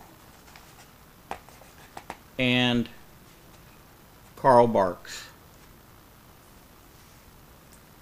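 Pages of a paper comic book rustle as they turn.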